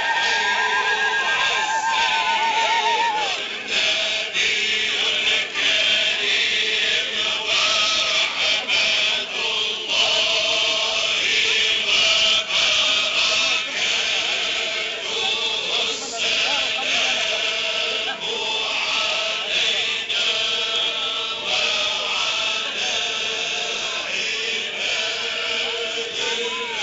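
A dense crowd of men and women chatters and shouts loudly all around.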